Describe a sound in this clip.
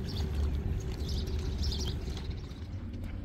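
Water splashes softly as hands plant seedlings in a flooded field.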